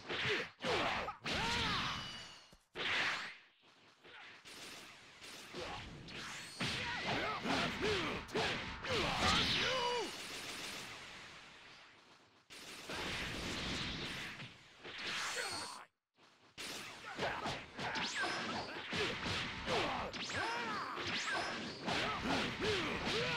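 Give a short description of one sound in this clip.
Heavy blows land with loud thuds and cracks.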